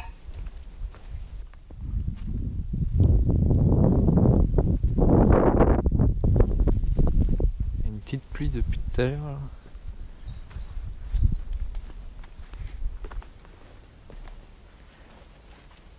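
Footsteps crunch through dry leaves outdoors.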